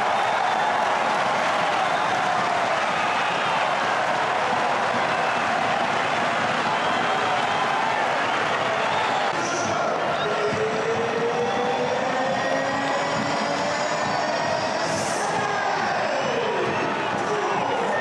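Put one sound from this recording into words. A large crowd cheers loudly in a stadium.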